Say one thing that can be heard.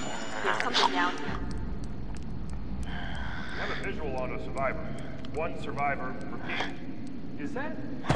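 A creature chews and tears at wet flesh with squelching sounds.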